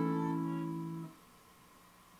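A guitar chord rings out and is cut off.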